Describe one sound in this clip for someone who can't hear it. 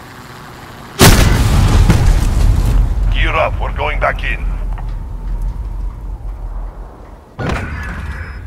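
A rifle fires a single loud shot that booms and rumbles away.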